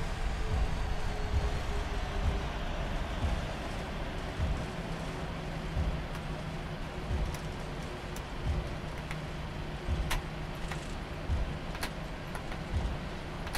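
Wheels thump rhythmically over runway joints.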